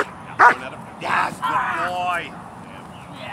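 A dog growls and snarls while biting.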